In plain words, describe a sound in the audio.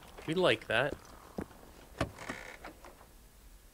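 A car boot lid clunks open.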